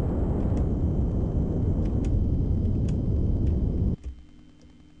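A rocket engine roars steadily, then cuts off abruptly.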